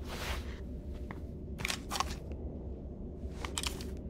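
Metal pistols click and clack as they are picked up.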